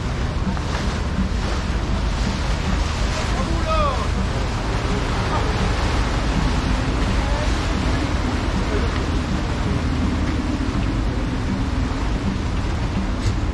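Water splashes and churns in boats' wakes.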